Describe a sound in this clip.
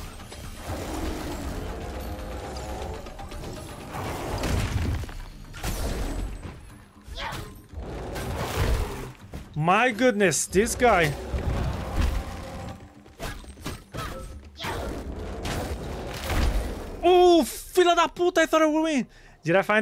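Game combat sounds of impacts and swooshes ring out.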